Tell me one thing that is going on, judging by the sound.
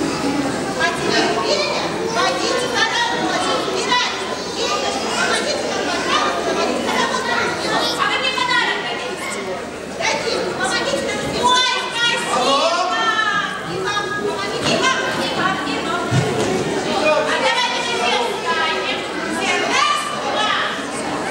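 An elderly man speaks through a microphone.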